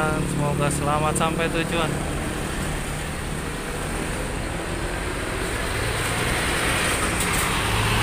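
A large bus engine rumbles nearby.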